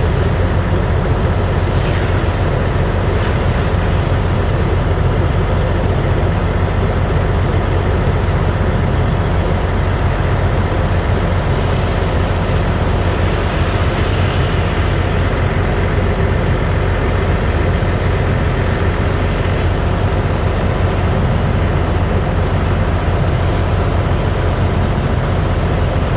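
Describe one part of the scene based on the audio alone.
A pump engine drones steadily nearby.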